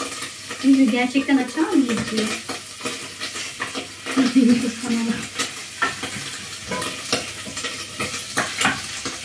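A metal utensil clinks and scrapes against a frying pan.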